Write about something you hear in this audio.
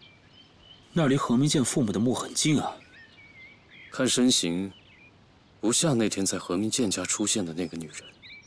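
A young man speaks quietly and tensely, close by.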